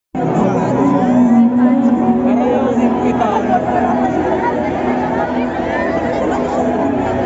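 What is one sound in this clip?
A large crowd cheers and screams loudly outdoors.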